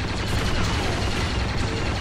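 A jetpack roars in flight.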